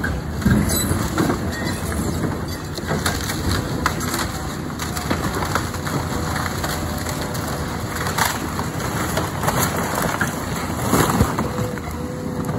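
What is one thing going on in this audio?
Wood and debris crash and crack as a building is torn down.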